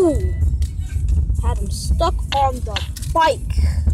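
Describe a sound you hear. A bicycle crashes and clatters against the ground.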